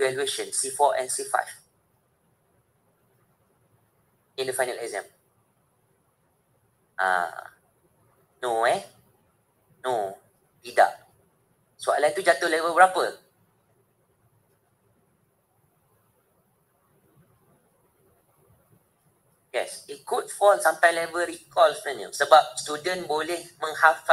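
A man speaks through an online call, in short phrases with long pauses.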